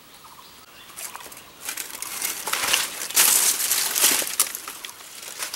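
Dry leaves rustle and crunch as someone pushes through undergrowth.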